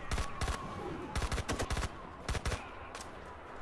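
A submachine gun fires.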